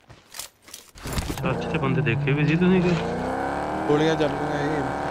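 A car engine roars and revs as a car drives off.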